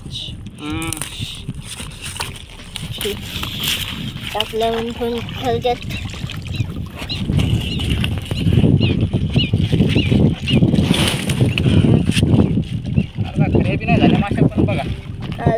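Water splashes gently against a small boat.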